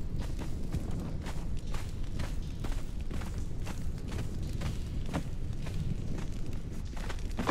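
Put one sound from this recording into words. Footsteps thud steadily on a stone floor.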